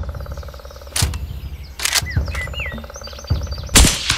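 A rifle fires with sharp, loud cracks.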